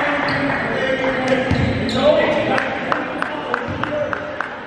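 A basketball bounces steadily on the court.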